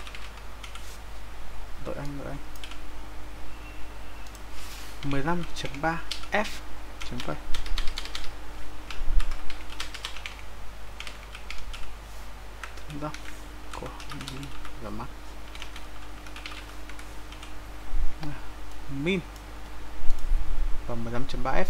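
Keys clatter on a keyboard as someone types.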